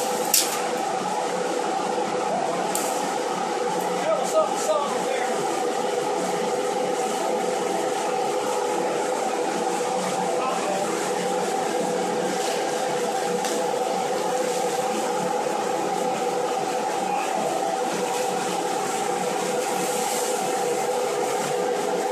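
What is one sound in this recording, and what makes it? A blower motor hums loudly and steadily.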